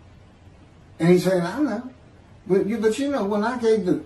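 An older man speaks calmly into a microphone, heard over an online call.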